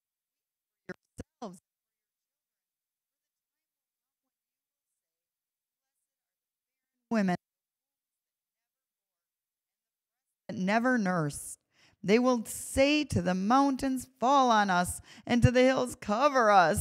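A young woman reads aloud calmly into a microphone.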